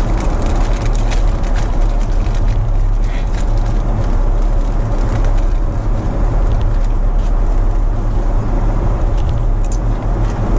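A steady low engine roar drones on.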